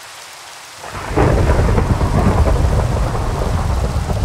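Thunder rumbles loudly.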